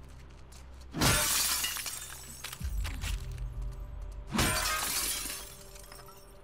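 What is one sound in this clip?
Glass doors shatter loudly and shards clatter to the floor.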